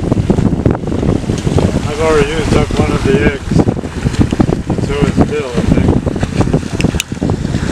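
Water rushes and splashes past a boat's hull.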